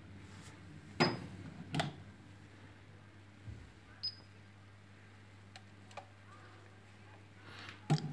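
Plastic knocks and clatters as a hand handles a small device.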